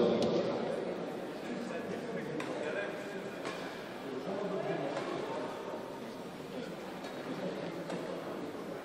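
A crowd of spectators murmurs softly in a large echoing hall.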